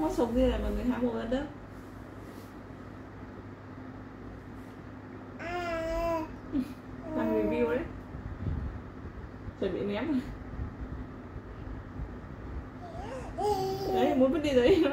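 A baby babbles and squeals close by.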